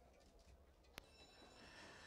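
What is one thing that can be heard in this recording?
Starting gates spring open with a sharp metal clang.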